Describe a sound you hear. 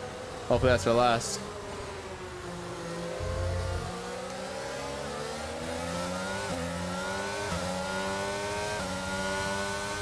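A racing car engine whines, rising in pitch and dropping with each gear change.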